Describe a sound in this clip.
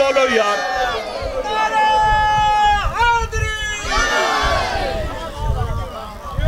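A man chants loudly and passionately into a microphone, his voice echoing through loudspeakers.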